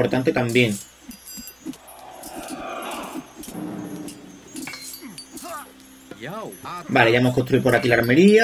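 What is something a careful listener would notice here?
A magical shimmering chime rings out softly.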